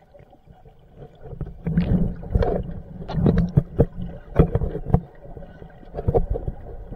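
Bubbles from a diver's breathing gurgle and rumble underwater.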